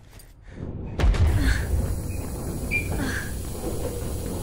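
Steam bursts out with a loud hiss.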